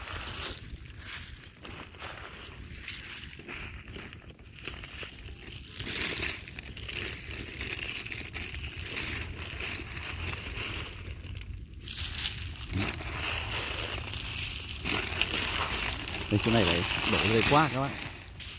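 Water sprays and patters onto leaves and soil.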